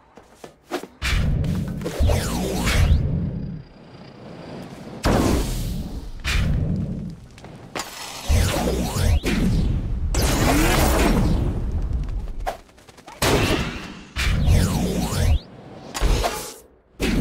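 A loud rushing whoosh with a deep rumble surges again and again.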